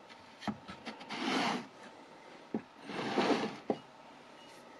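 Wood scrapes as it slides across wood.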